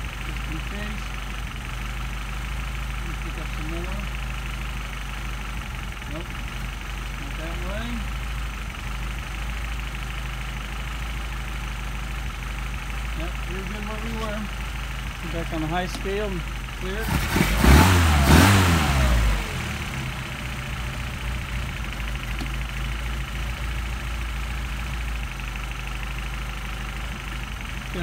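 An engine idles steadily nearby.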